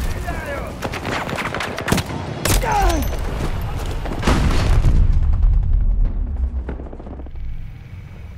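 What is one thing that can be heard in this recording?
Explosions rumble deeply.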